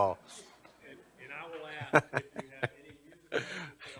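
Several men talk and laugh quietly.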